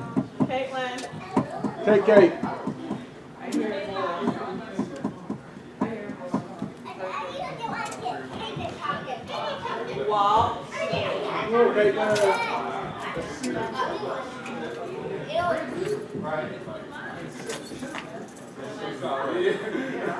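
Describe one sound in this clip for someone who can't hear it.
Several men and women talk casually at a distance in a large, echoing hall.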